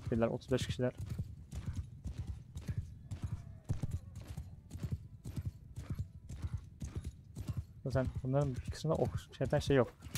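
A horse gallops, its hooves pounding the ground in a quick, steady beat.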